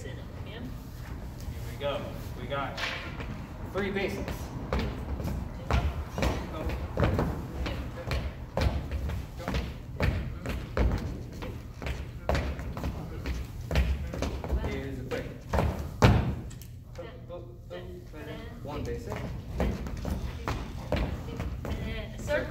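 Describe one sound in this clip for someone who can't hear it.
Shoes shuffle and tap on a wooden floor.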